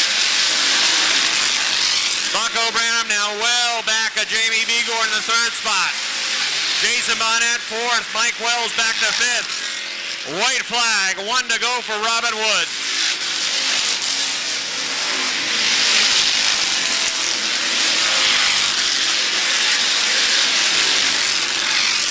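Race car engines roar loudly as cars speed around a track.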